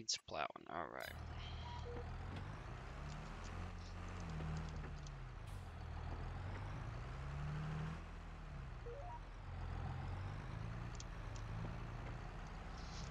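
A tractor engine rumbles steadily and rises and falls in pitch.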